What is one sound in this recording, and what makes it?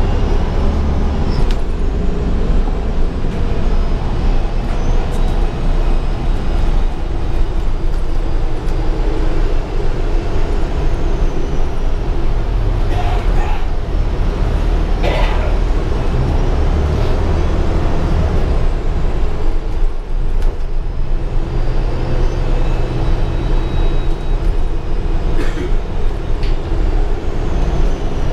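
The bus interior rattles and clatters over bumps in the road.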